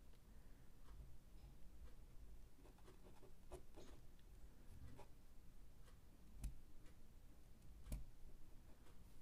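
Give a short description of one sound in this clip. A pen scratches and taps softly on paper.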